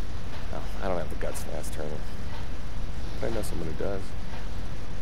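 A young man speaks calmly in a low voice, close by.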